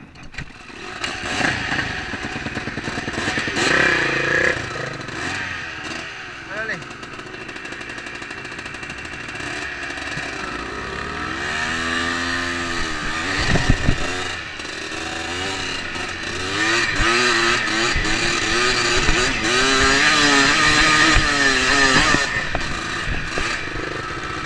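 A dirt bike engine revs and roars close by, rising and falling as it rides.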